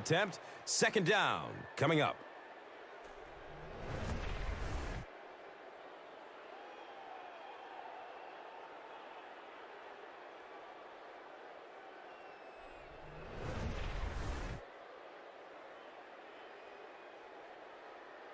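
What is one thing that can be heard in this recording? A large crowd murmurs and cheers steadily in a big stadium.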